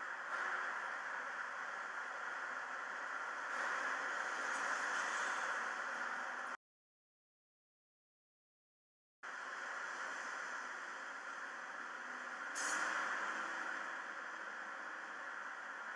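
Wind rushes steadily past the microphone outdoors.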